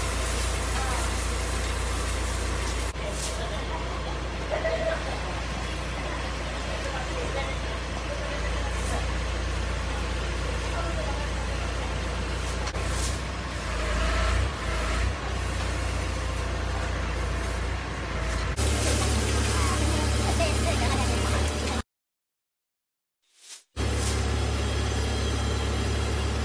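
An engine rumbles steadily nearby.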